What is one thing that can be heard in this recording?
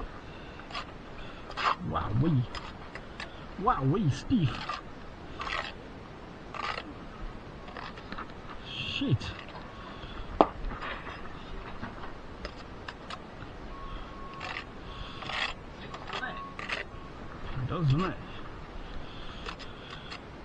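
A steel trowel scrapes and taps on mortar and brick.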